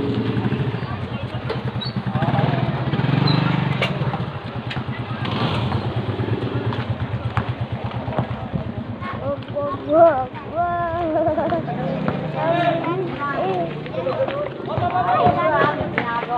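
A motorcycle engine putters steadily close by as it rides along.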